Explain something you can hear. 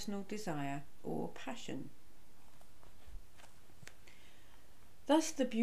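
A middle-aged woman speaks calmly and close to a microphone, with pauses.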